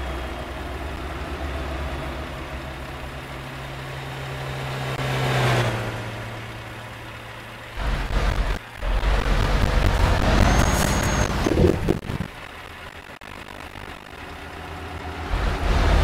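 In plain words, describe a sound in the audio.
A truck engine rumbles and strains at low speed.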